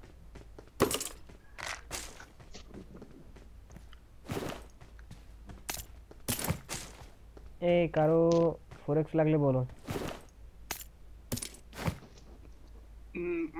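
Short clicks and taps sound as items are picked up.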